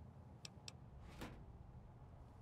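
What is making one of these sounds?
A wooden drawer slides shut.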